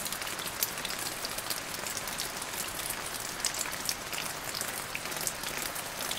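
Heavy rain pours steadily, with drops pattering on leaves and branches.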